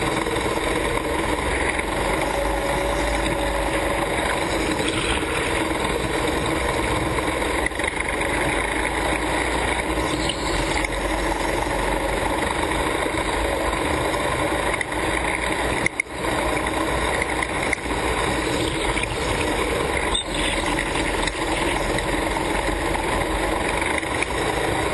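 A go-kart engine drones loudly and steadily in a large echoing hall.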